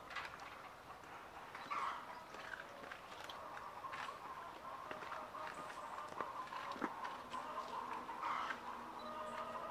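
Pigs grunt softly.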